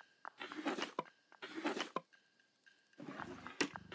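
A metal drawer slides open.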